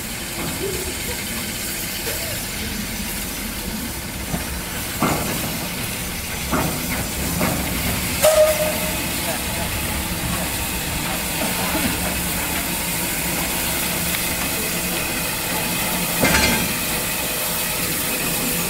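A steam locomotive slowly rumbles closer along the track.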